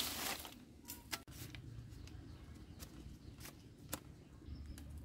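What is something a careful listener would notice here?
Bamboo strips clack and clatter against each other on the ground.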